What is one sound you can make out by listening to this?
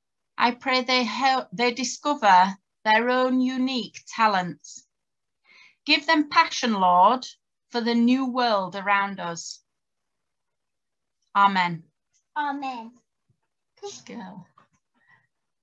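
A woman speaks warmly and clearly into a nearby microphone, as if over an online call.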